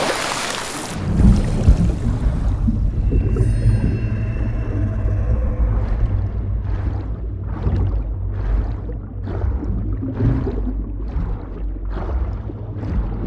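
Water rumbles and gurgles with a low muffled sound underwater.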